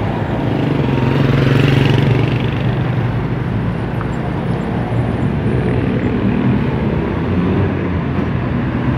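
Car engines rumble as vehicles drive past on a road.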